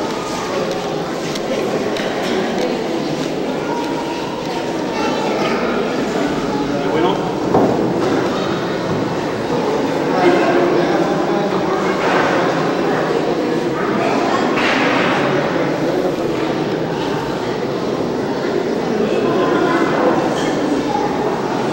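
A crowd of men talk among themselves nearby.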